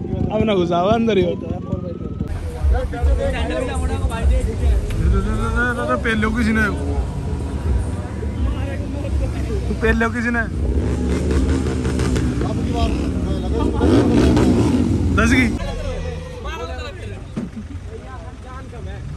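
An engine revs loudly nearby.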